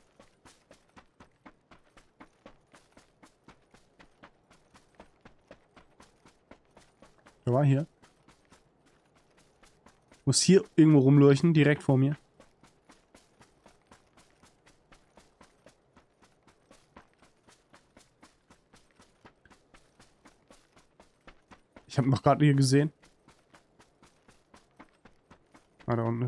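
Footsteps run steadily through grass.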